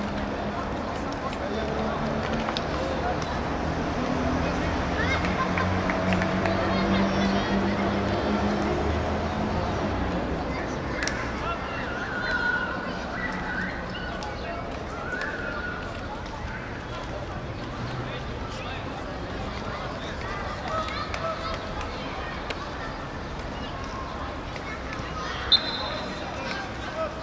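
Young men shout to each other across an open field, heard from a distance.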